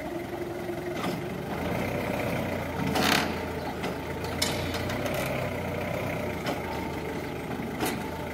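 A forklift's metal mast clanks and knocks.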